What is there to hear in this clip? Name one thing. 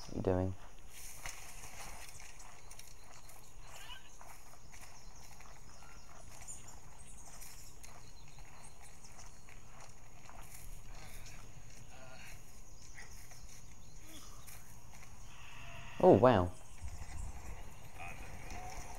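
Footsteps tread on stone as several people walk.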